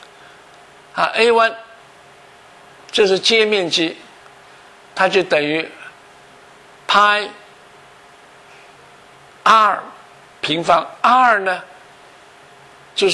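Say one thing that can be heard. An elderly man speaks calmly in short phrases into a close microphone.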